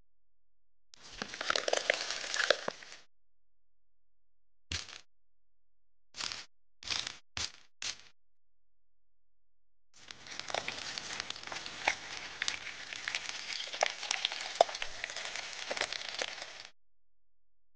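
Buttercream squishes wetly out of a piping bag.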